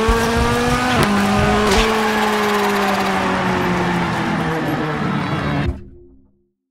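A rally car engine roars at high revs.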